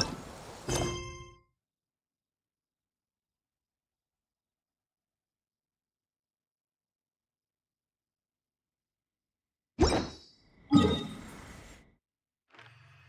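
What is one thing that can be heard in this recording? Chiming game menu sounds play in short bursts.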